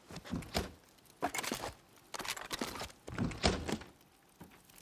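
A metal locker door clanks open.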